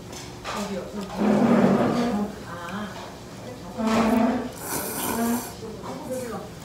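A man slurps noodles loudly.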